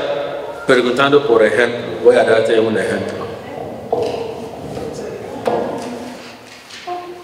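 A man speaks calmly into a microphone in an echoing room.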